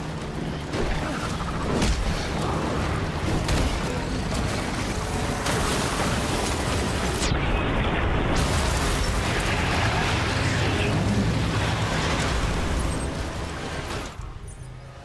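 A monster roars and thrashes amid loud crashing.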